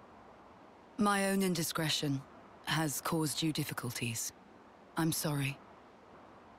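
A young woman speaks softly and apologetically.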